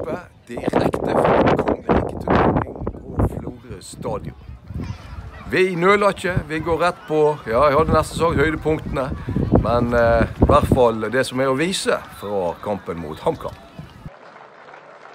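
A middle-aged man talks with animation close to the microphone, outdoors.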